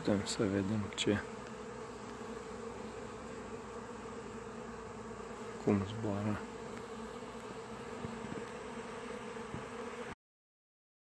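Bees buzz steadily.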